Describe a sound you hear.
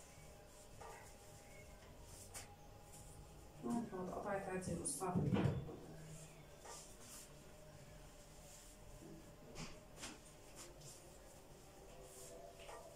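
Hands rustle and crinkle a sheet of plastic wrap.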